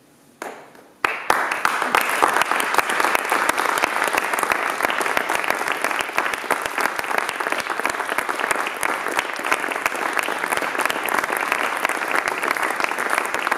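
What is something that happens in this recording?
An audience bursts into loud, steady applause in a large hall.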